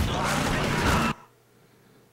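A motorbike engine roars.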